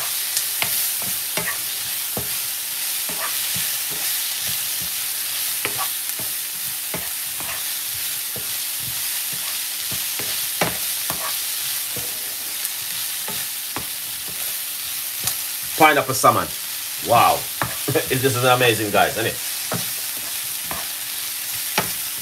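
A wooden spoon scrapes and taps against a pan.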